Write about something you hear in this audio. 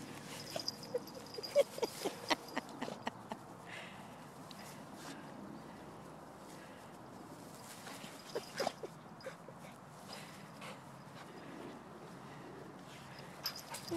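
A dog rolls and rubs on rustling grass.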